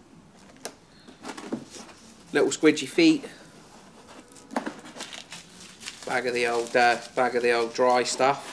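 Packaging rustles and crinkles as a man unpacks a box.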